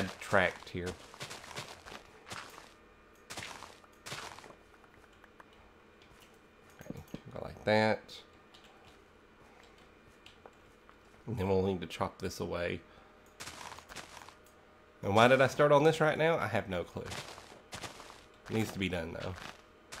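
Dirt crunches in short bursts as it is dug away.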